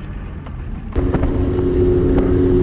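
A boat motor hums steadily as the boat moves over the water.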